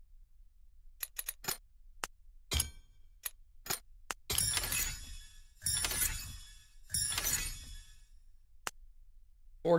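Short electronic chimes and clicks ring out in quick succession.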